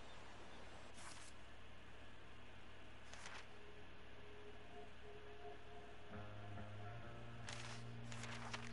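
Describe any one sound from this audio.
Paper pages flip with a quick swish.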